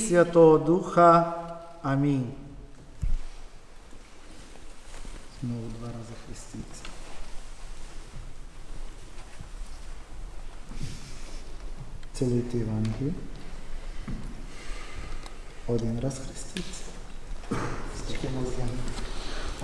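A man chants in a slow, singing voice.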